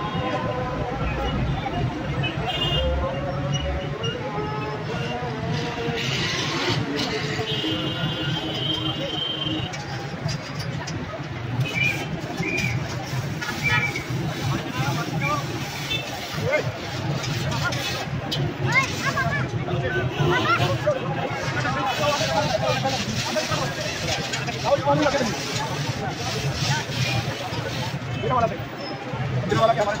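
A crowd of men and boys chatters all around outdoors.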